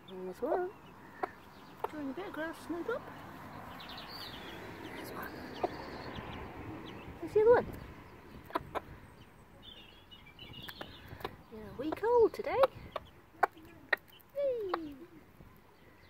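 A chick cheeps softly nearby.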